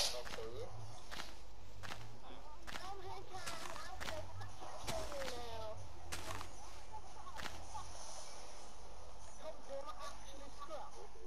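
Footsteps tap steadily across leaves and stone in a video game.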